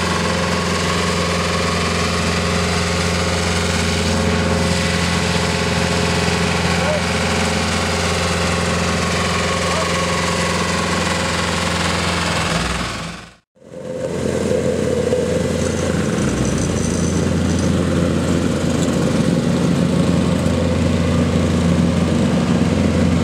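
A road roller's engine drones steadily nearby.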